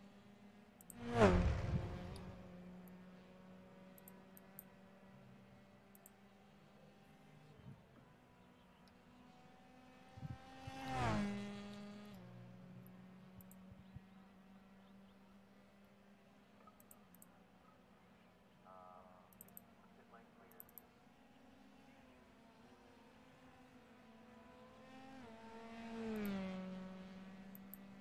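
A racing car roars past with a quickly falling pitch.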